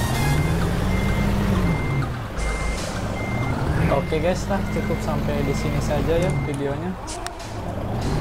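A bus engine rumbles and changes pitch as it drives.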